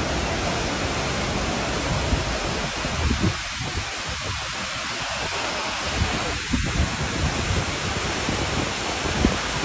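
A waterfall roars steadily close by.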